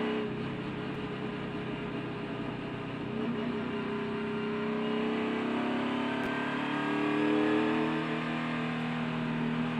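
A racing car engine roars at high revs throughout.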